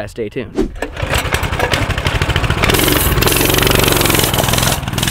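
A small motorbike engine revs loudly and rattles.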